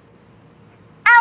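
A young woman speaks loudly into a microphone over an online call.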